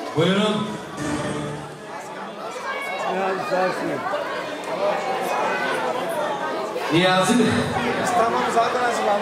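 A man speaks loudly into a microphone over a loudspeaker in a large echoing hall.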